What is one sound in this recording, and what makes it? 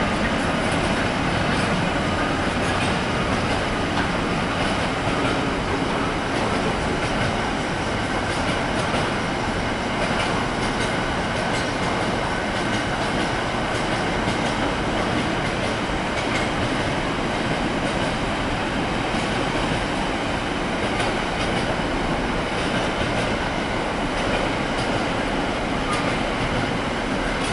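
A long freight train rumbles past steadily, its wheels clattering over the rail joints.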